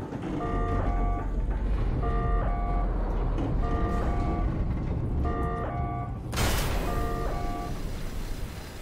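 An electronic alarm beeps in a quick repeating pattern.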